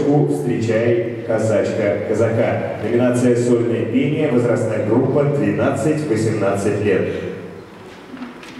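Music plays loudly through loudspeakers in a large hall, then stops.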